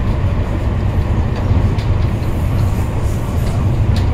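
Another train rushes past close by with a loud whoosh.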